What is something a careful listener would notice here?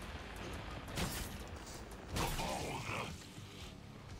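A sword slashes through flesh with wet, sudden impacts.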